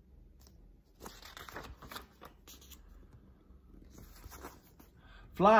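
Paper pages rustle as a book's page turns.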